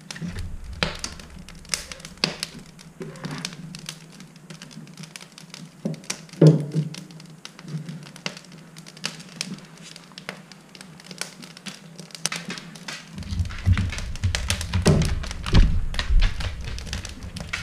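A fire crackles in a wood stove.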